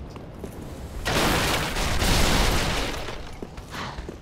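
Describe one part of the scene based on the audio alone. Wooden barrels crash and splinter.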